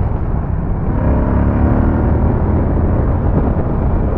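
A motorcycle engine hums and rises in pitch as it speeds up.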